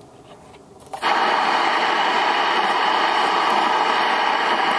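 An old television hisses loudly with static.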